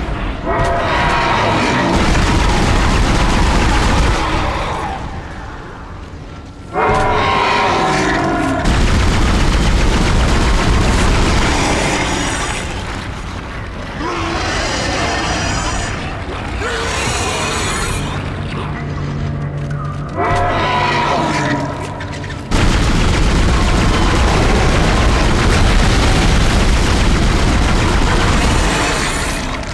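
A weapon fires in sharp bursts.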